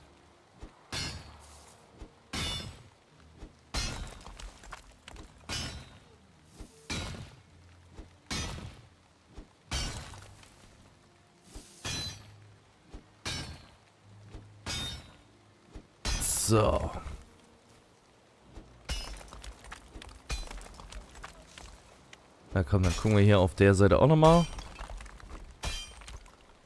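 A pickaxe strikes rock again and again at a steady pace.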